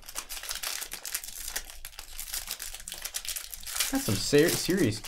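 Foil wrappers crinkle and rustle as they are torn open.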